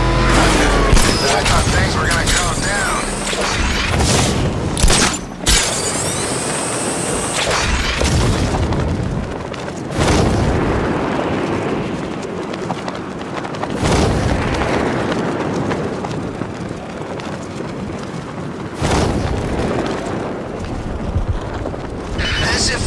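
Wind rushes loudly.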